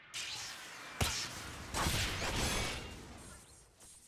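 A heavy metal blade clangs down and scrapes along a hard floor.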